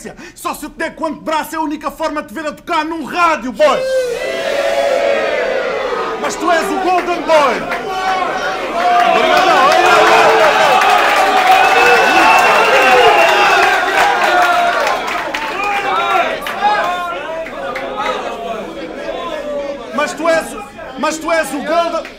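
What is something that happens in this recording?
A young man raps forcefully into a microphone in an echoing room.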